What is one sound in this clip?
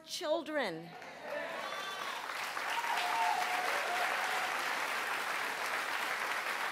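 A large crowd cheers and applauds.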